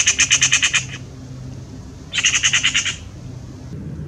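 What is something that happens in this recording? A magpie chatters close by in loud, rapid rattling bursts.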